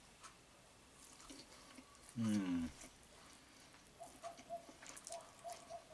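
A man slurps pasta and chews.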